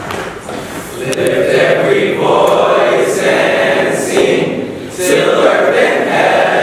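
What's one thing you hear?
A choir of young men sings together in a large room.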